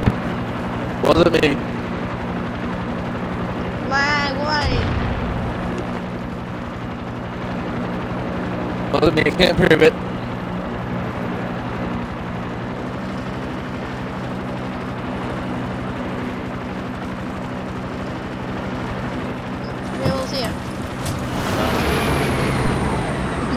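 A helicopter engine and rotor drone steadily.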